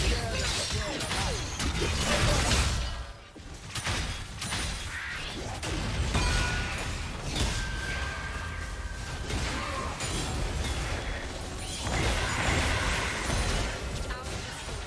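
Game spell effects whoosh and clash during a fight.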